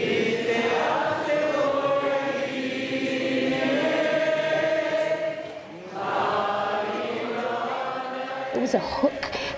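A large crowd sings together in a big echoing hall.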